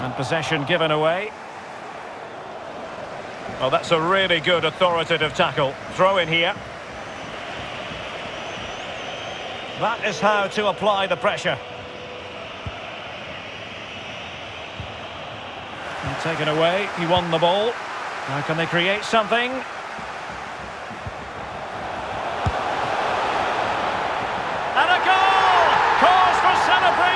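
A stadium crowd murmurs steadily and swells into a loud roar.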